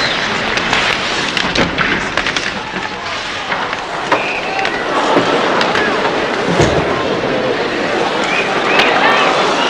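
A crowd cheers and shouts loudly in a large echoing arena.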